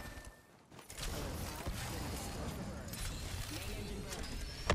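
A jet engine roars with a loud rushing whoosh.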